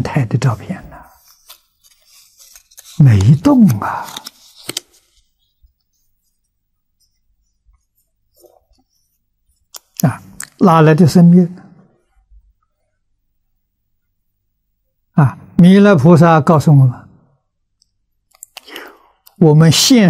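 An elderly man speaks calmly into a close microphone, with long pauses.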